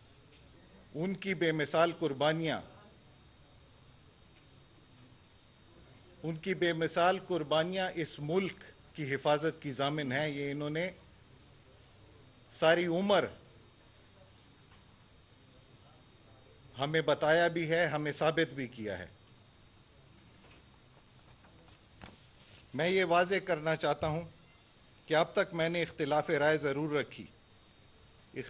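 A middle-aged man speaks calmly into a microphone in short phrases with pauses.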